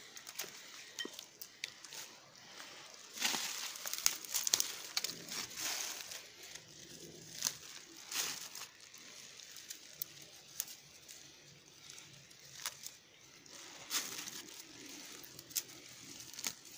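Dry grass and twigs rustle and crackle as someone pushes through them.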